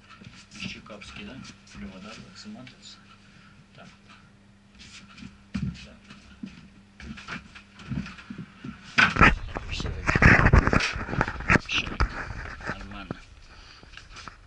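Loose trousers rustle and brush close by.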